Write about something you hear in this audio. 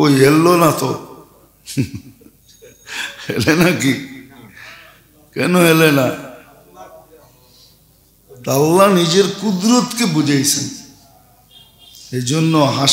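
An elderly man preaches in a chanting, sing-song voice into a microphone, heard through a loudspeaker.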